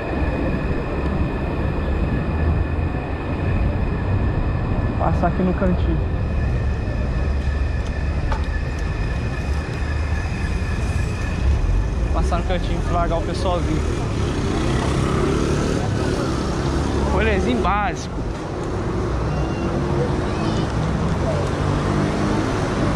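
Wind rumbles and buffets loudly against a microphone outdoors.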